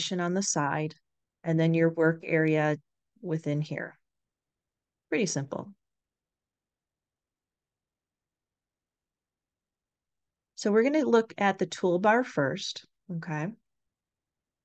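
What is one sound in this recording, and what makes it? An elderly woman speaks calmly into a microphone, in short bursts with pauses.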